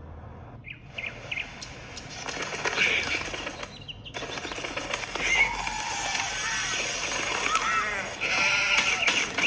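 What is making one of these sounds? Game sound effects chirp and pop from a small tablet speaker.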